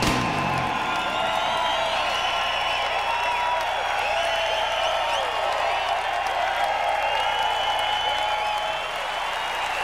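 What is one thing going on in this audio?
A large crowd cheers and whistles in a big echoing hall.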